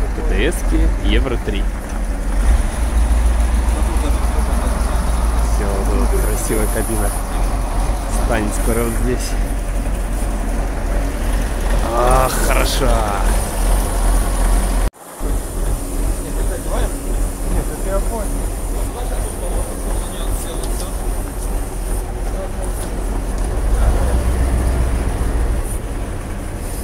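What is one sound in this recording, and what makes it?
A truck-mounted crane's diesel engine runs.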